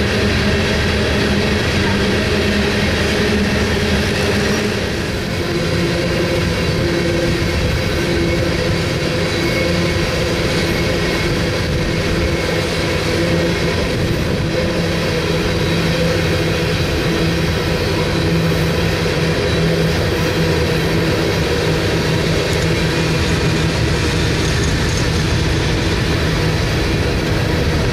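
Freight car wheels clatter and squeal on the rails.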